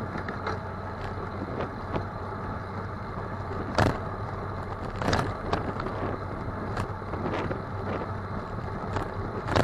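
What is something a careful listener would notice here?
A small vehicle bumps and rattles over the road.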